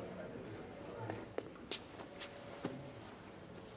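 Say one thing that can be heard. A puffy jacket rustles as someone sits down.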